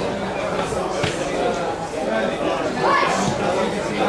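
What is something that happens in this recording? A rugby ball is kicked with a dull thud.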